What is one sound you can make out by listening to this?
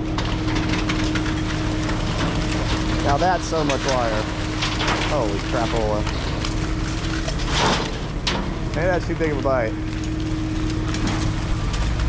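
Tangled scrap metal clinks and rattles as a grapple lifts it.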